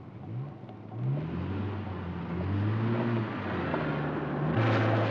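Car engines rev and hum as cars pull away.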